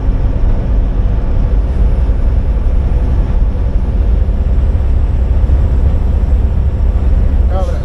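A large truck rumbles past close alongside.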